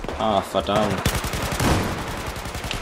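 A rifle fires several rapid shots.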